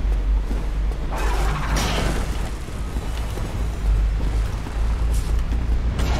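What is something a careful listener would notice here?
Flames whoosh in a burst.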